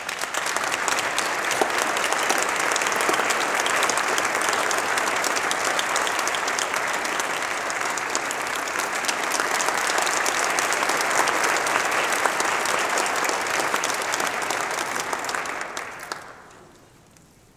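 An audience applauds loudly in a large echoing hall, then the clapping dies away.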